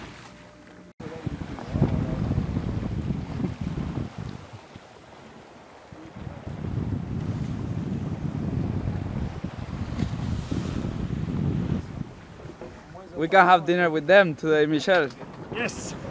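Water rushes along the hull of a racing sailboat under sail.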